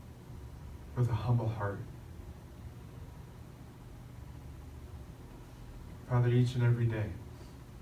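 An elderly man speaks slowly and calmly into a microphone, in short phrases with pauses.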